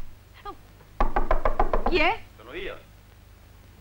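A young woman calls out in a clear voice.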